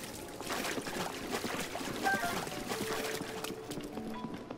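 Water splashes as a character wades through it.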